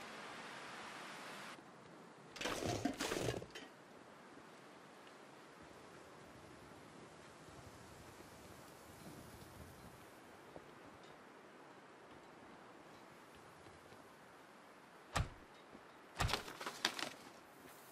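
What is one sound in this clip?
Wind blows steadily over open snow.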